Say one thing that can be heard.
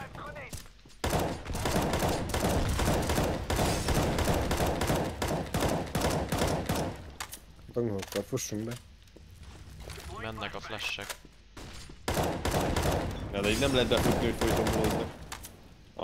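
Rapid automatic gunfire rattles in bursts.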